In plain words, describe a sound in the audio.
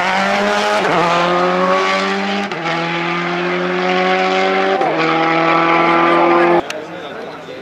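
A rally car engine roars loudly as the car accelerates away, shifting up through the gears.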